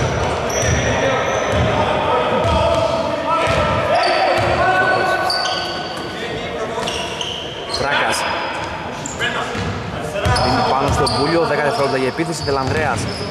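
A basketball bounces on the floor with dull thuds.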